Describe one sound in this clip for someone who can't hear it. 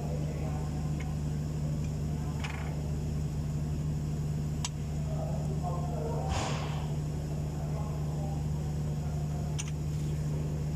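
Metal parts click and knock.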